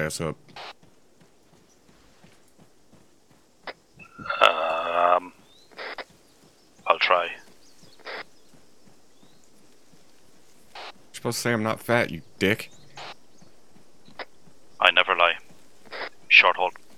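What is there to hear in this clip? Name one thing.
A soldier's footsteps crunch on grass and dry ground.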